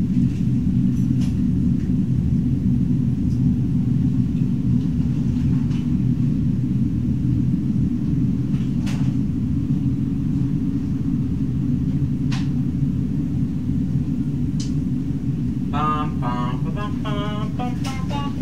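Deep, droning music plays steadily.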